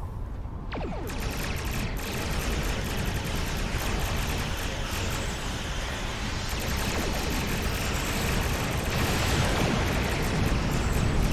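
Weapon beams fire in rapid bursts.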